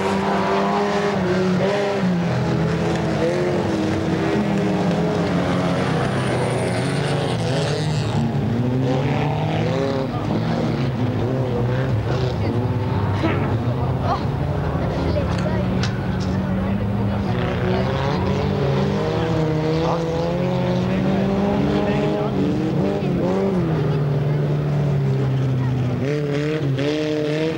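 Several car engines roar and rev loudly.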